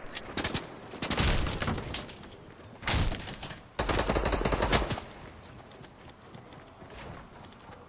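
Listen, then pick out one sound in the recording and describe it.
Wooden and metal building pieces clunk into place.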